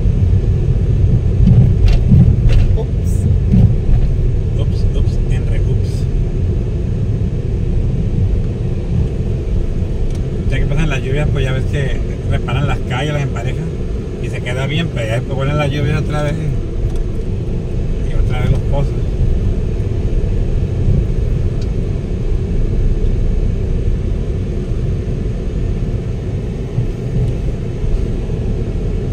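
Tyres rumble on a bumpy road.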